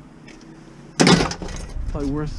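A bicycle frame clanks as it is dropped into a van.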